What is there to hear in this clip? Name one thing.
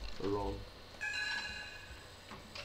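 A computer warning chime sounds once.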